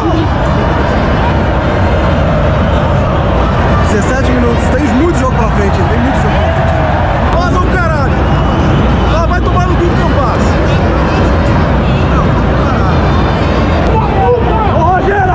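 A large stadium crowd sings and chants loudly throughout.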